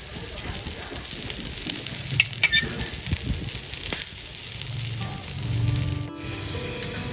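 Scallops sizzle softly on a grill.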